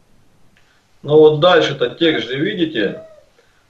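An elderly man speaks with animation, close to a microphone.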